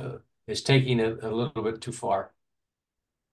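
An older man talks calmly over an online call.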